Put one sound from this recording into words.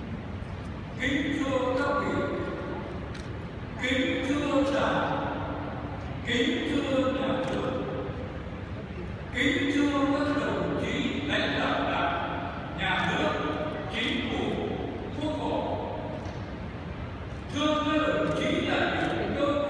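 An elderly man reads out slowly through a microphone in a large echoing hall.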